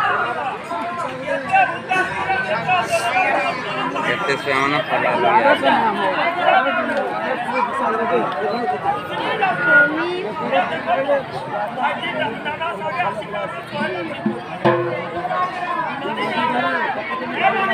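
A large outdoor crowd of men and women chatters all around.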